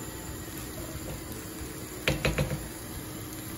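A wooden spatula scrapes and stirs rice in a frying pan.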